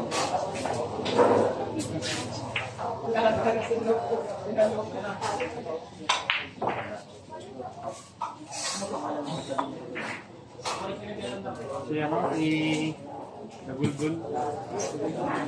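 A crowd of young men and women chatters nearby.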